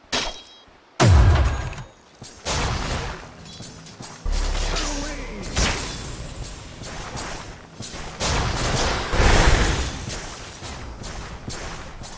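Game weapons clash with sharp hits.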